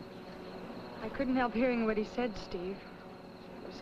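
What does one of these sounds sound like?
A woman speaks anxiously up close.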